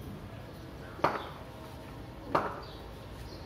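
A wooden bat knocks sharply twice, ringing off hard walls.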